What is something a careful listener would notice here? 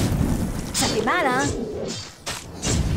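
A monster shrieks and growls.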